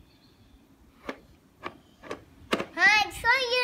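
Plastic toy dinosaurs clack against each other.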